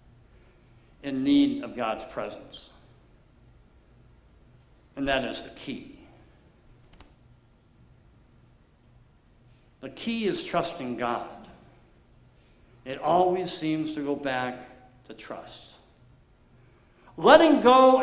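A middle-aged man speaks calmly in pauses through a microphone in a room with a slight echo.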